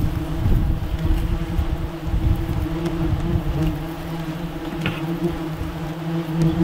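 Many wasps buzz steadily up close.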